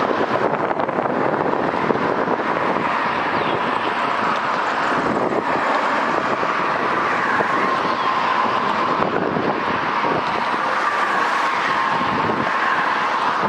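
A diesel locomotive engine rumbles steadily as it rolls slowly along.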